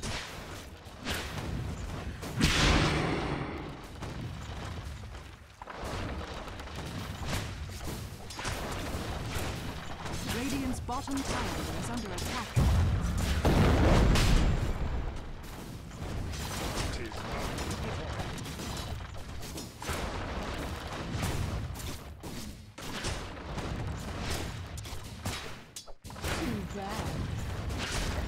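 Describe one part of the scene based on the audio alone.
Magic blasts and weapon strikes clash in a fast battle.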